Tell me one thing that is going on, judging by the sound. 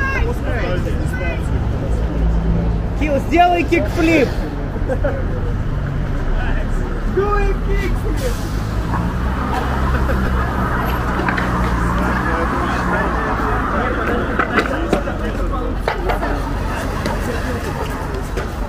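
Cars drive past on a road.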